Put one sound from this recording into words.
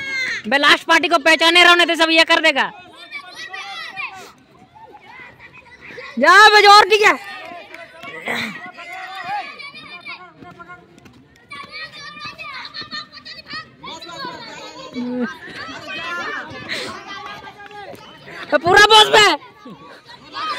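Young boys shout loud, drawn-out calls close by, outdoors.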